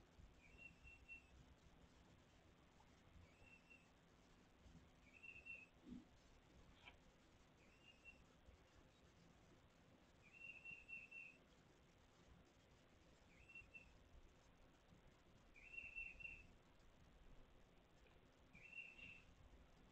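A small kitten mews in short, high, repeated squeaks.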